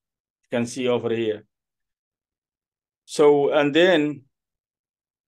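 A man recites in a slow, melodic voice close to a microphone.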